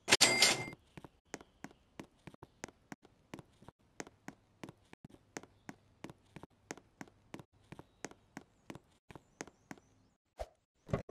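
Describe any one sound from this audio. Quick footsteps patter at a steady running pace.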